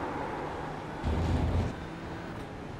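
Tyres rumble over kerbs.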